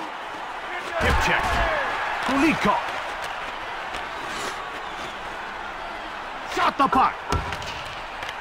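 A hockey stick smacks a puck.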